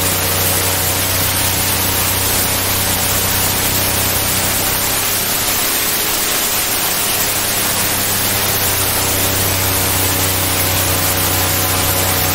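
Water rushes and sprays beside a fast-moving boat.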